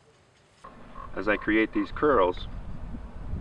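An elderly man speaks calmly, close by.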